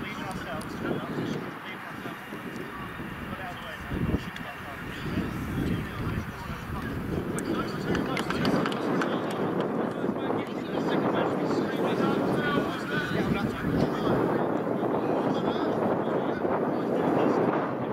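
Young men shout and call out across the field.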